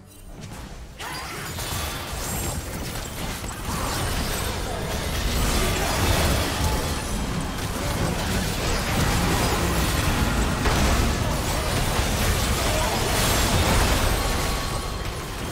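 Magic spells blast and crackle in a hectic video game battle.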